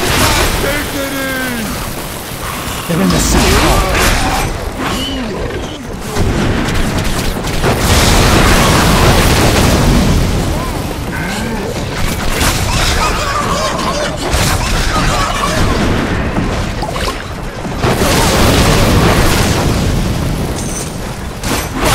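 A sword swings and slashes with sharp metallic hits.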